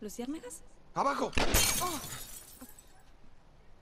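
A gunshot shatters window glass.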